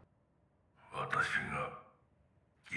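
An elderly man speaks slowly and gravely.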